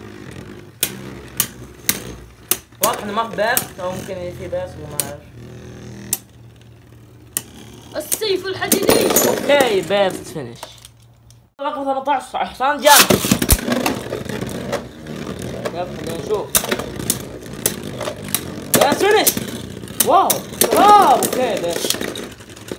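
Small spinning tops whir, clack and scrape against each other inside a plastic dish.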